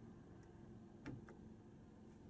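A button clicks softly.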